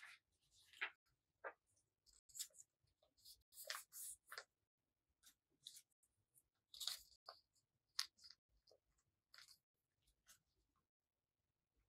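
Paper rustles and crinkles as it is folded by hand, close by.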